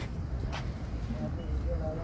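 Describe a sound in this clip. Pigeons coo softly.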